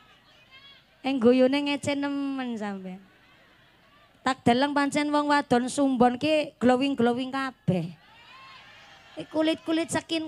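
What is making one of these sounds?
A young woman sings loudly into a microphone through loudspeakers.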